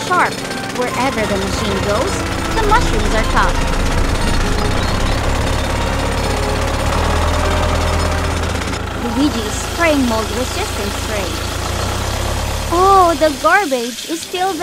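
A toy tractor engine hums as it drives over sand.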